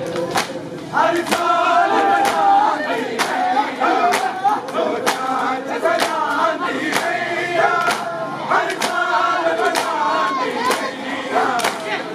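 A man shouts out a chant close by.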